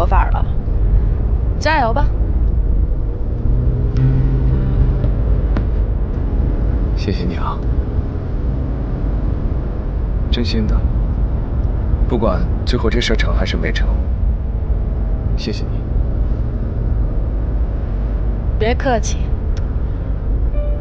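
A woman speaks softly and close by.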